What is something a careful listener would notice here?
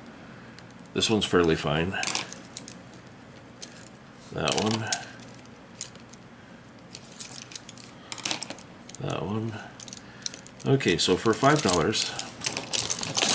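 Wooden paintbrush handles clatter and click together.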